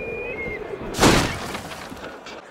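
A body lands with a heavy thump in a pile of hay.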